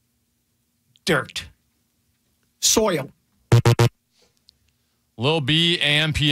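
A second man answers into a close microphone.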